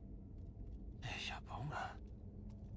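A man mutters gruffly nearby.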